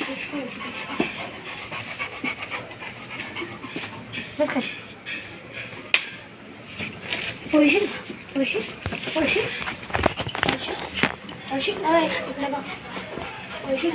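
A dog pants.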